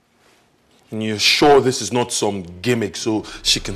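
A man speaks firmly.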